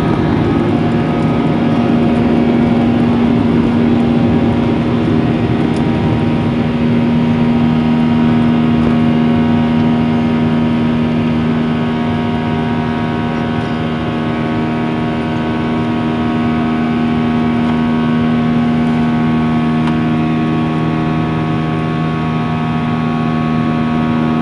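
Jet engines roar loudly and steadily during takeoff.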